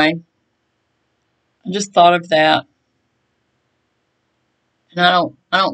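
A middle-aged woman speaks calmly and close by, in short phrases.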